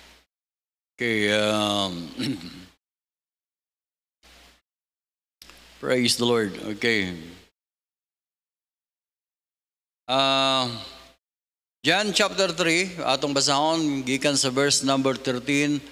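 An older man speaks calmly into a microphone, with pauses, in a large echoing hall.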